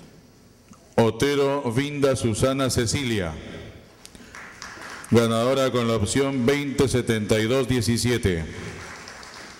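A man announces loudly through a loudspeaker.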